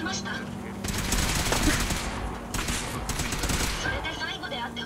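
A laser gun fires in rapid zapping bursts.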